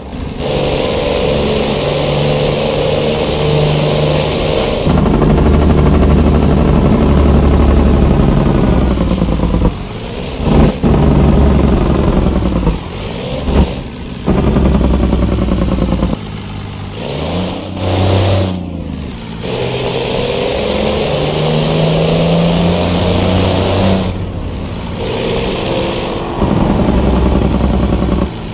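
A truck engine drones steadily and changes pitch as it shifts gears.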